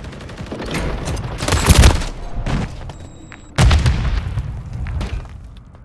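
A grenade explodes with a loud, deep boom.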